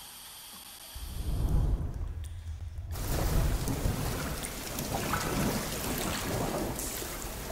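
Water laps and splashes against a small wooden boat gliding through a cave.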